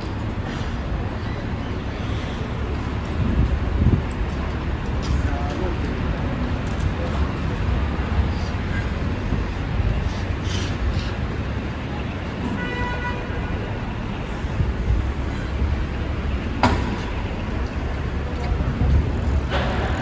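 Cars drive past on the street.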